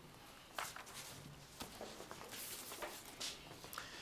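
Pages of a book rustle as they are turned.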